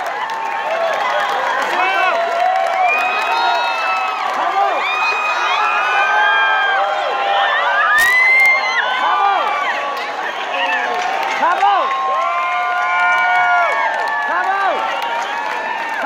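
A large crowd cheers and shouts loudly in a big echoing hall.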